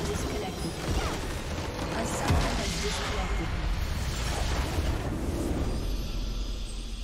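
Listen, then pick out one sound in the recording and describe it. A video game's crystal structure bursts apart with rumbling magical blasts.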